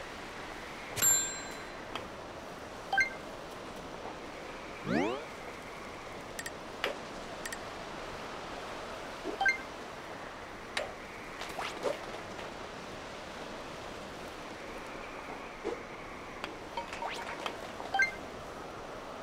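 Short electronic chimes ring out now and then.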